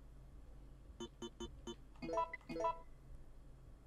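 Short electronic beeps sound in quick succession.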